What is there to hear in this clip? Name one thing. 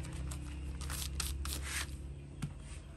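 A pencil scratches on paper.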